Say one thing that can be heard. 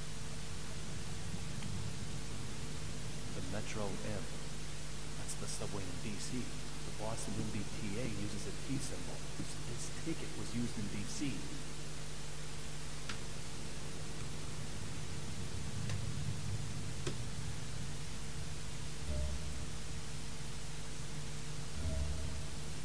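An aircraft cabin drones steadily and low.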